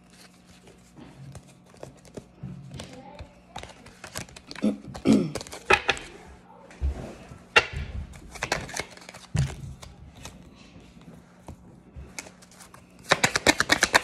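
Paper cards rustle and flick in quick bursts.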